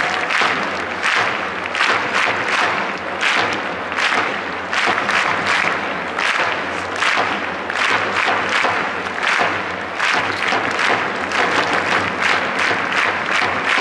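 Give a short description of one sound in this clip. A large crowd chants loudly in rhythm, echoing around an open stadium.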